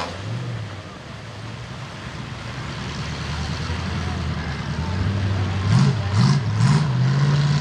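Mud splashes and sloshes under spinning tyres.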